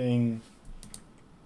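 A man speaks briefly and calmly, close to a microphone.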